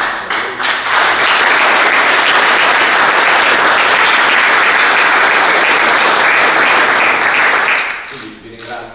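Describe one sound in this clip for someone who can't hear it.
A crowd applauds in a room.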